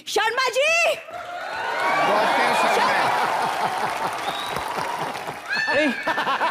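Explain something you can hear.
An audience laughs and applauds in a large hall.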